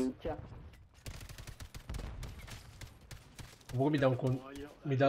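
Rapid gunfire crackles from a video game.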